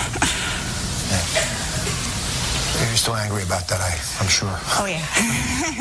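A woman laughs softly.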